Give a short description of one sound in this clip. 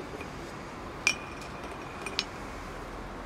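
A small metal piece clinks against a hard block.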